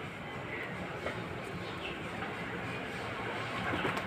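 A pigeon flaps its wings as it lands.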